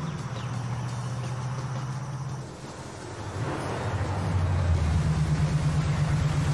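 A car engine rumbles and grows louder as the car approaches.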